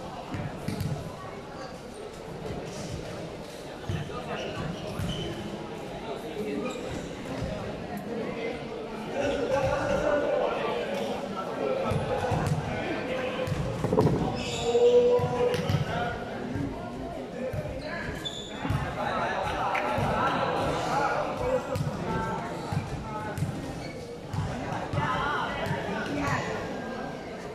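A crowd of young people chatters in a large echoing hall.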